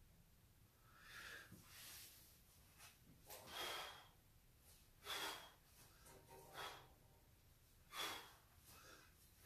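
A man exhales forcefully in short, sharp bursts, close by, in a small room.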